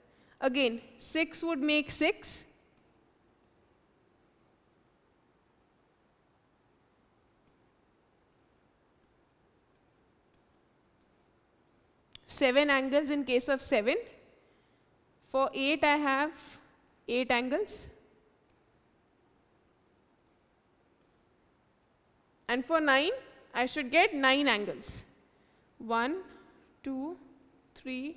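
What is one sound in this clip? A young girl speaks calmly and clearly through a headset microphone, in short bursts with pauses.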